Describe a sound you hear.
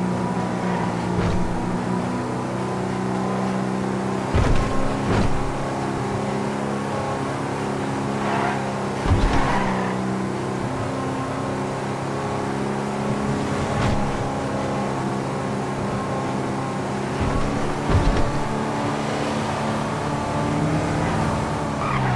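A car engine hums steadily as the car drives along a winding road.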